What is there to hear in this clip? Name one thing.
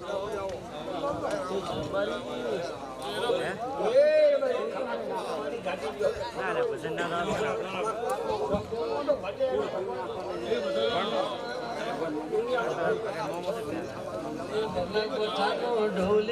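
An elderly man sings loudly through a microphone.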